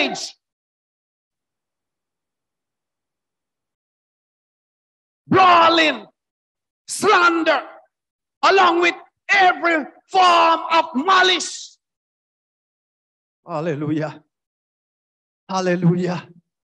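A man preaches into a microphone in short, emphatic phrases with pauses between them.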